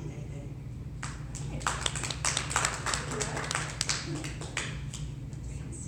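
Hands clap in applause.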